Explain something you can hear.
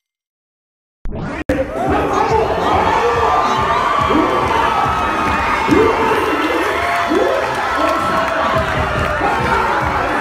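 A lively crowd cheers and shouts.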